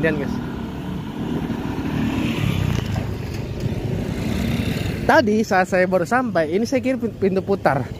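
Motorcycle engines rumble past up close.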